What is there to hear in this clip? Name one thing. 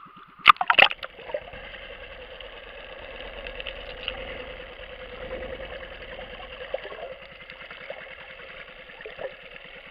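A muffled underwater hiss and rumble goes on steadily.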